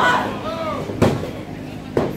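A wrestler slams onto a ring mat with a loud thud.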